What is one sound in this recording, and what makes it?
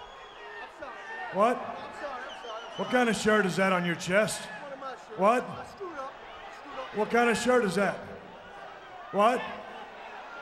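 A man speaks loudly and angrily up close.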